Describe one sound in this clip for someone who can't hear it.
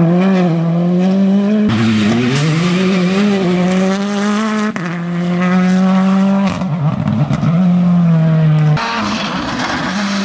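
Gravel sprays and crackles under a car's tyres.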